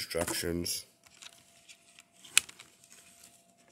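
Plastic packaging crinkles as it is handled.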